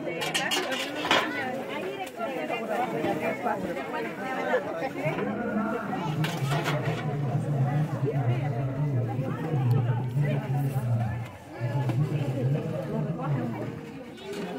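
A crowd of women chatter close by, outdoors.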